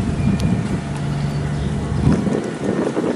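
A boat engine hums low and steadily.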